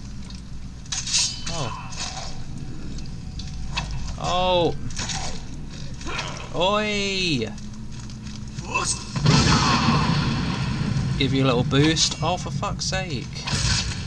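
Metal weapons clang and strike in a fight.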